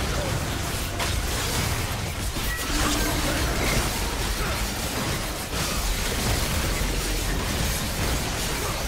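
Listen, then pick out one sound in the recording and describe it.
Game spell effects crackle, whoosh and boom in a busy fight.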